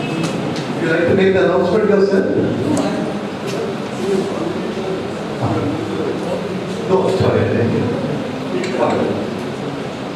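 A woman speaks through a microphone and loudspeakers in a large room.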